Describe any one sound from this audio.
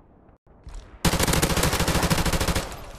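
A rifle fires in a rapid burst of loud shots.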